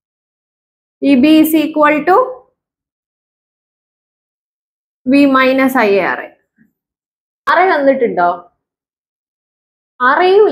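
A woman speaks calmly and clearly in short phrases close to a microphone.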